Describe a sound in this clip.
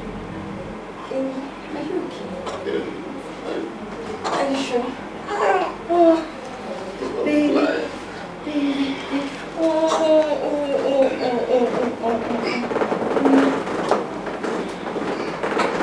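A woman talks softly and emotionally nearby.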